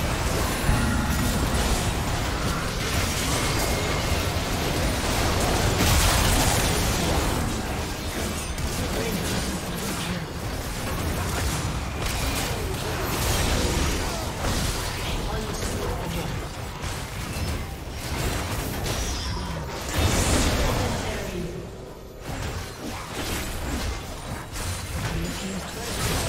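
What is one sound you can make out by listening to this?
Magic spells crackle and blast in a hectic fight.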